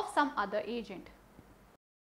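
A young woman speaks calmly into a clip-on microphone, close by.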